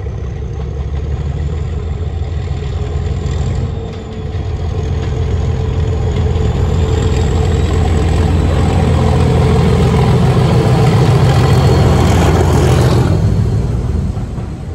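A diesel locomotive's engine rumbles and grows louder as it approaches.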